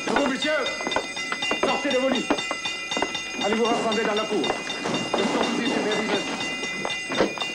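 A man speaks sternly nearby.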